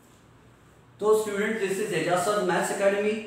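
A young man speaks clearly and steadily, close by.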